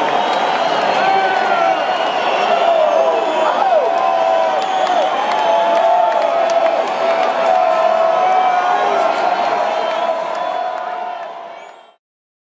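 A large crowd cheers and screams loudly in a big open space.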